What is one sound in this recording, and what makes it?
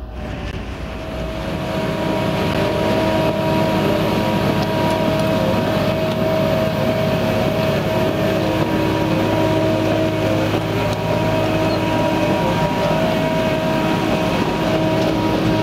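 A heavy machine's engine hums steadily close by.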